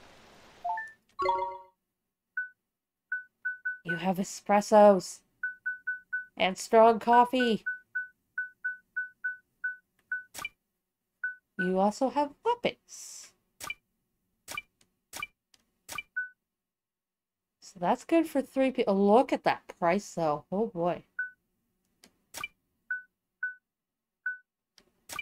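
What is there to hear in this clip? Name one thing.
Short electronic menu blips sound as a cursor moves.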